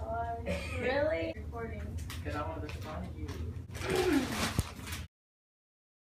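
Children talk and laugh nearby.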